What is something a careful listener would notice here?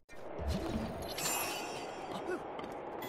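A magical burst rings out with a bright chime.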